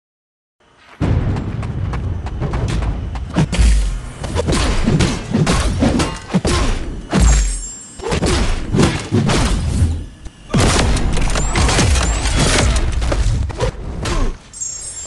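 Game fighters land punches and kicks with heavy thuds and cracks.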